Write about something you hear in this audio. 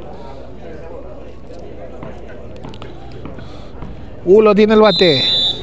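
A crowd chatters outdoors in the distance.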